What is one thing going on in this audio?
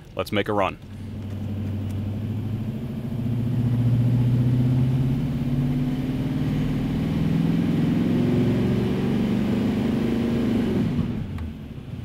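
A truck engine roars and revs up steadily.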